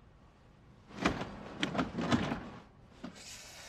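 A door handle rattles as a man tries the door.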